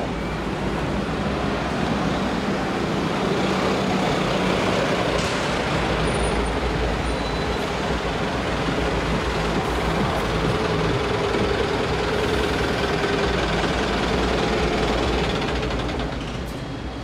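A bus engine rumbles as a bus drives past and pulls up.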